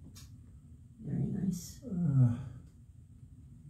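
An elderly woman speaks briefly into a microphone, close by.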